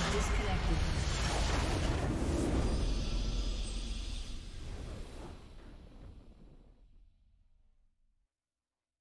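A triumphant fanfare swells and then fades to silence.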